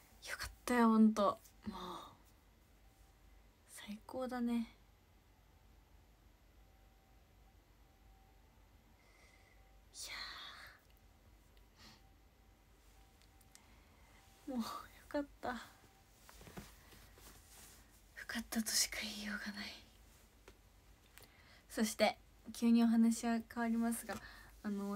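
A young woman talks close by with long pauses.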